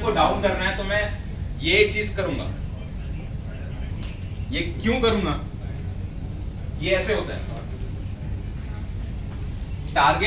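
A young man speaks calmly in a room with a slight echo.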